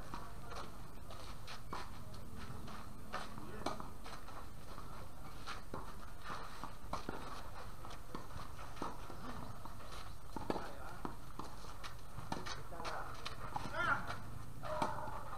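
Sneakers scuff and squeak on a hard court.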